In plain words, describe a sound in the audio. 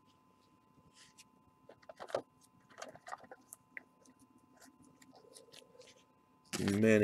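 A stiff card slides and taps against plastic as it is handled.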